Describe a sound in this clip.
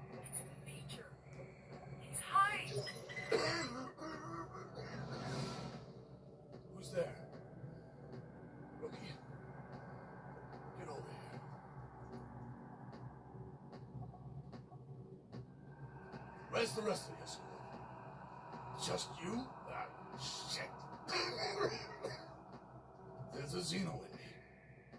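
Video game sounds play from a television speaker.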